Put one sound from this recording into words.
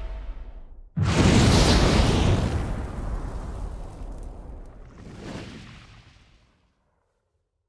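A burst of flame roars loudly and slowly dies away.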